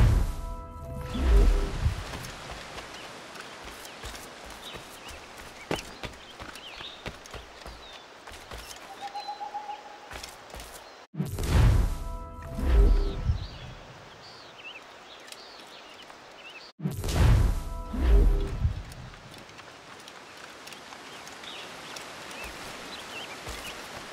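Footsteps rustle quickly through grass and undergrowth.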